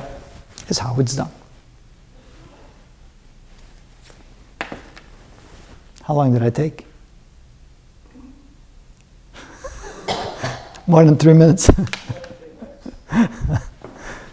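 An older man speaks calmly and clearly into a close microphone, in short bursts with pauses.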